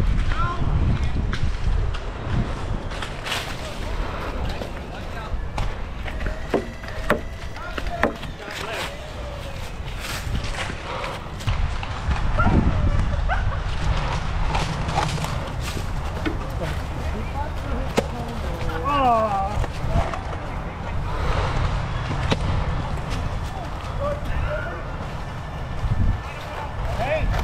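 Footsteps crunch quickly through dry leaves.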